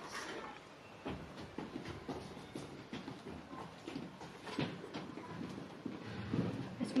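Children's footsteps shuffle across the floor.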